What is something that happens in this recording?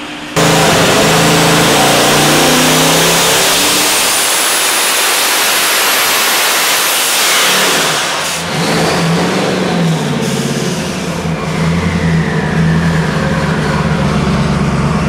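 A turbocharger whines high and rises in pitch, then winds down.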